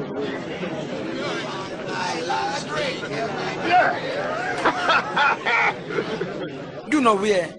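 A crowd of men chatters and murmurs.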